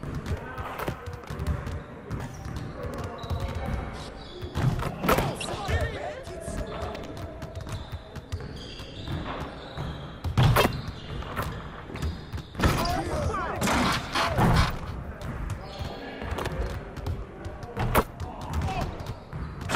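Basketballs bounce on a hardwood court.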